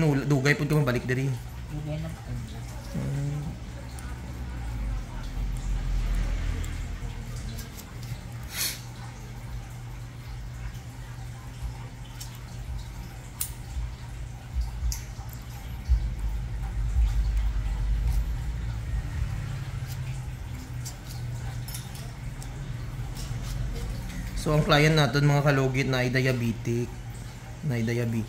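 Nail clippers snip at a toenail with small, sharp clicks.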